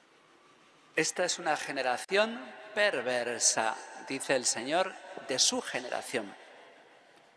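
A middle-aged man speaks with animation into a microphone in a reverberant hall.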